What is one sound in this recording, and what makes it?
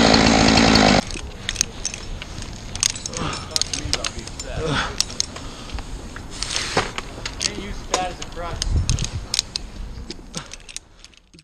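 Metal climbing gear clinks and rattles.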